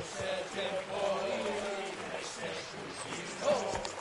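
Horses' hooves splash through shallow water.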